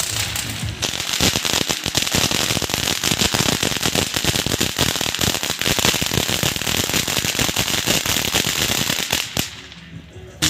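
A firework fountain crackles and pops loudly outdoors.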